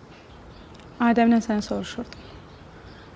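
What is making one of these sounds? A young woman answers softly nearby.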